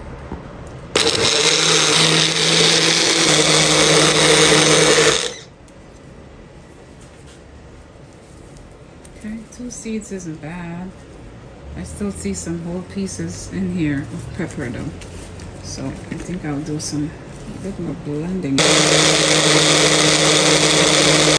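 A blender whirs loudly, chopping and pureeing.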